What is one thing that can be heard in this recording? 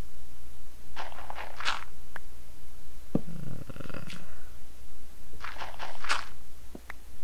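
Wooden blocks break with soft crunching thuds.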